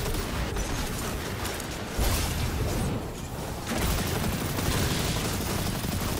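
Energy blasts boom with a deep rumble.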